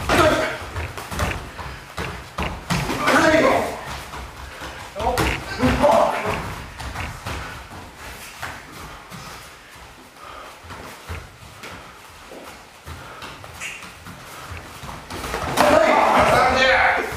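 Bare feet thump and slide on a padded floor.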